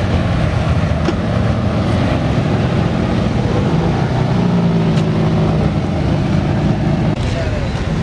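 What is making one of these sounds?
A sports car engine rumbles low as the car pulls slowly away.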